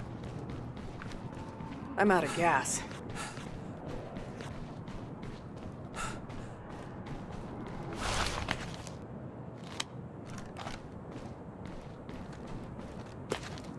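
Footsteps thud on pavement as a soldier runs.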